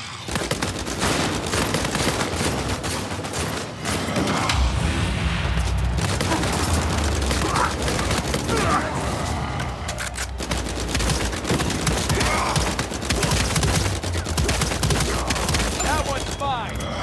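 Automatic gunfire rattles rapidly and loudly.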